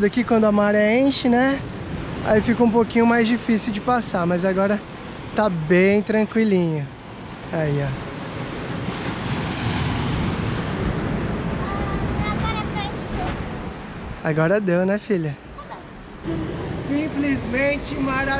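Waves crash and wash over rocks and sand.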